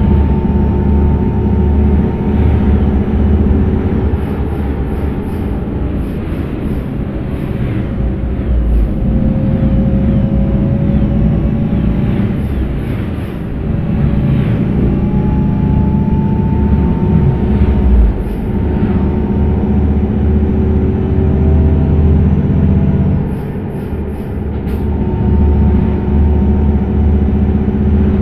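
A bus engine hums and drones steadily.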